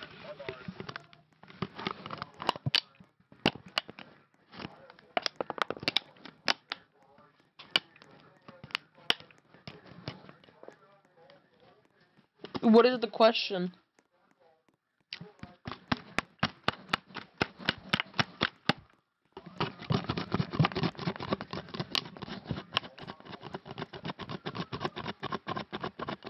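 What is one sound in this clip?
Rapid tapping clicks sound as blocks are dug away.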